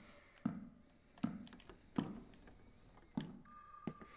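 A wooden cabinet door swings open.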